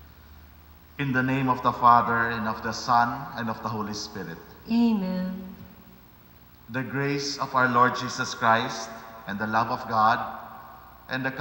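A man speaks slowly and solemnly through a microphone.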